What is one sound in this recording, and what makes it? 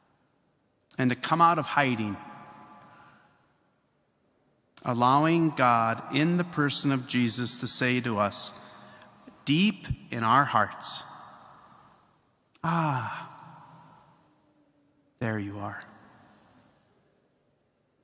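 A man speaks through a microphone in a large echoing church, in short phrases that ring on after each one.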